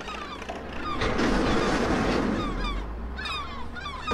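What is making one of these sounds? A dump truck's load of rubbish rumbles and slides out.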